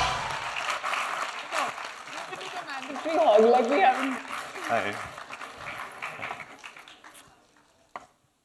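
An audience cheers and applauds in a large hall.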